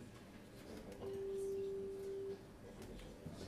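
A saxophone holds a long note.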